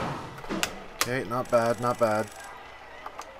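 A game's points counter ticks rapidly upward with bright chiming tones.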